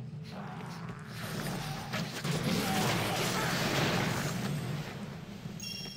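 Spell blasts and combat noises crackle loudly.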